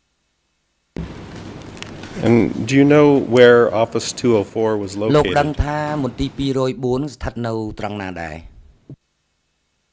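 A middle-aged man reads out calmly into a microphone.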